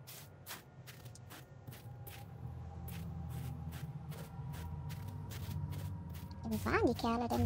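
Footsteps walk steadily on hard ground.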